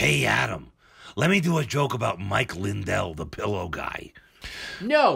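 An older man speaks into a microphone.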